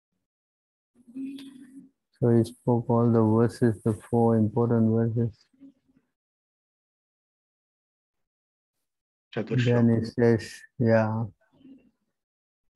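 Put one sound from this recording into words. An elderly man speaks slowly in long, drawn-out phrases over an online call.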